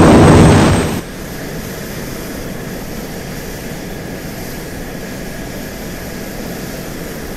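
A jet engine hums, muffled and steady.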